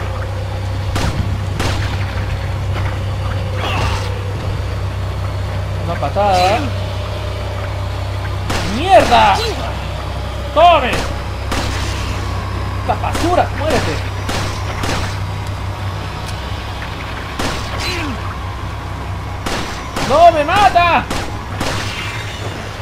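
A pistol fires sharp shots again and again.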